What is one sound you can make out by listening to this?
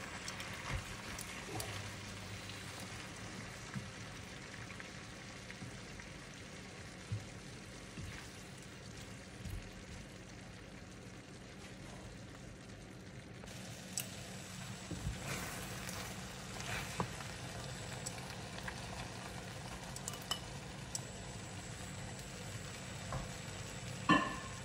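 Metal tongs clink against a frying pan.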